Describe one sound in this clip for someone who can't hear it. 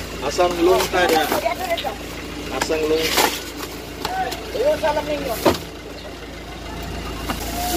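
Cardboard boxes scrape and rustle as they are moved.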